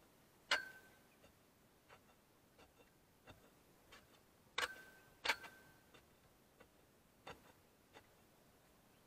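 Metal clanks and rings as a rod strikes a metal pole.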